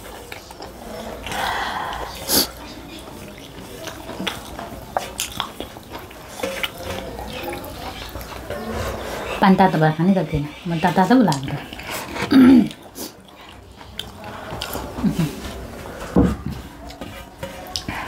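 A man slurps loudly from a metal plate.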